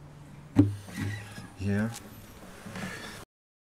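A young man speaks casually close by.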